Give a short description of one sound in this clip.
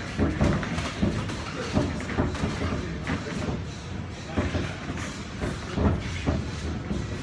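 Boxing gloves thud against bodies and gloves in quick bursts.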